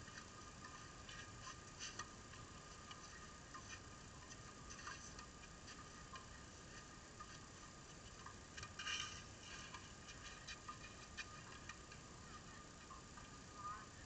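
Tennis shoes scuff and slide on clay.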